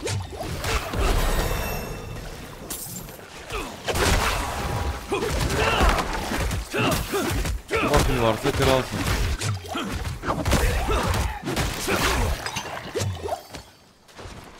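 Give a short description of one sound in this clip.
Game spells and combat effects crackle and boom.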